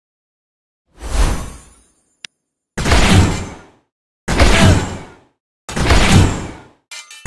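Game battle effects burst with loud booming blasts.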